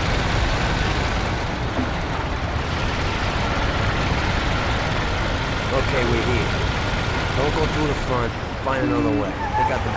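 An old car engine rumbles and chugs steadily while driving.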